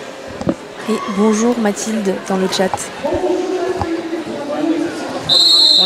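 Several women talk and call out together in an echoing hall.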